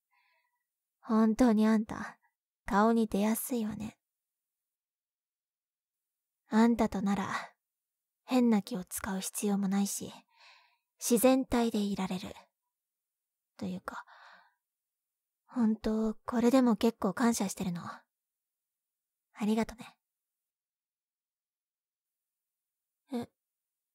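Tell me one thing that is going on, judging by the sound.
A young woman speaks softly and close to the microphone, in short phrases with pauses.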